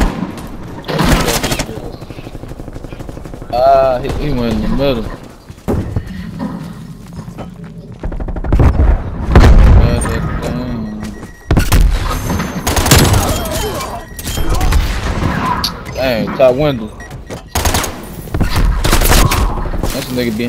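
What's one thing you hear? Gunshots fire in loud, rapid bursts.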